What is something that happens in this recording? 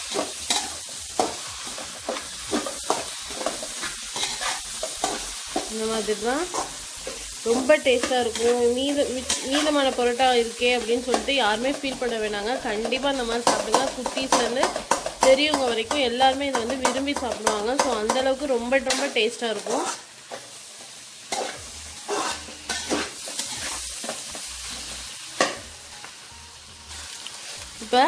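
A metal spoon scrapes and clatters against a metal bowl.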